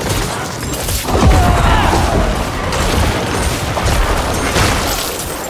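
A deep rumbling whoosh swells as a magic shield forms.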